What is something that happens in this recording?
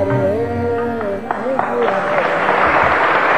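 A man sings a long, wavering melody into a microphone.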